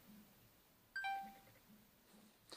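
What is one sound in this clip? A phone gives a short electronic beep.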